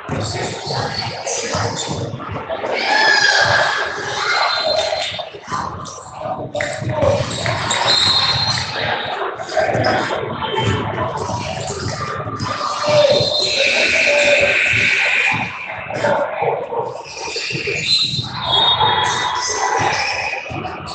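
Spectators talk and shout in a large echoing gym.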